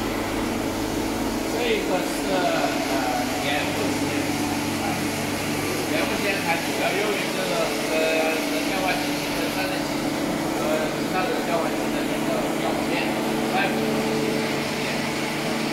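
A middle-aged man talks calmly and explains, close by.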